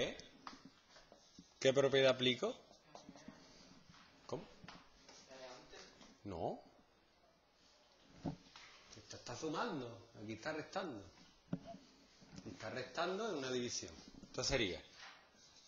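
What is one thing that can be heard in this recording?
A man speaks calmly, as if explaining, close by.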